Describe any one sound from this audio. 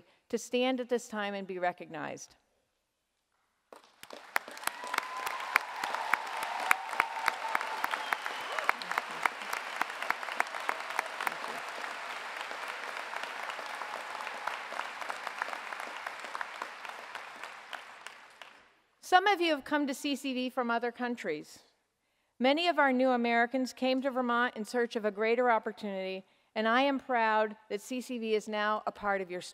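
An elderly woman speaks calmly into a microphone in a large hall.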